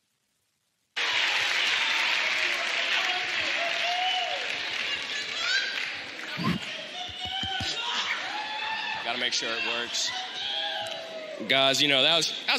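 An audience cheers and screams in a large hall.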